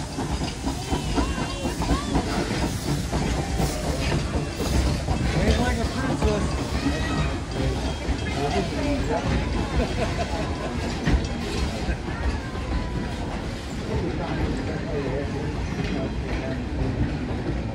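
A small steam train chugs and rumbles past on its rails.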